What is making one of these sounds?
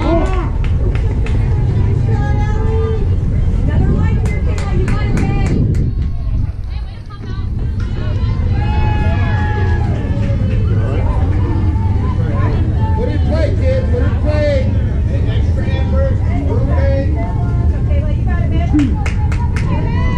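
Young women chatter and call out across a field.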